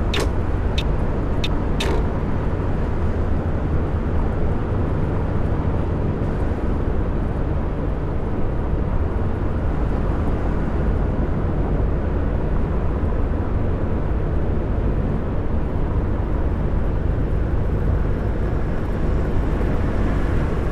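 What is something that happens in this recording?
Tyres roll and rumble on the road surface.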